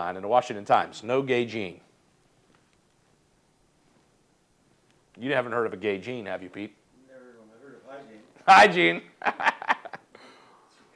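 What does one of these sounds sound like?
A middle-aged man speaks with animation close to a clip-on microphone.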